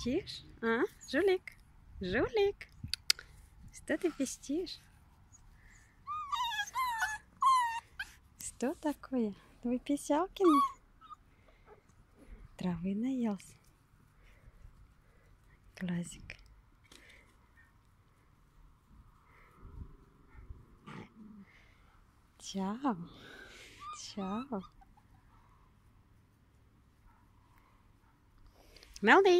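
A young puppy whines and yelps close by.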